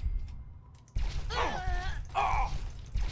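A gun fires with a heavy boom.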